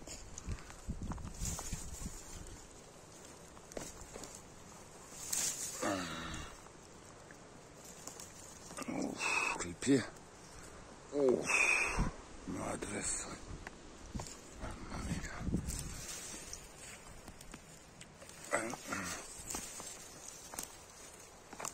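Dry twigs and pine needles rustle and crackle as a hand pushes through them.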